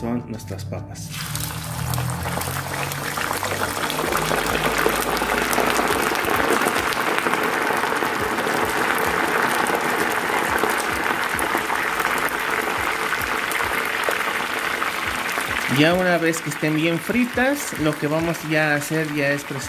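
Oil sizzles and crackles loudly as potatoes fry.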